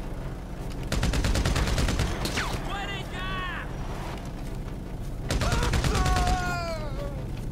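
Rapid gunfire crackles in short loud bursts.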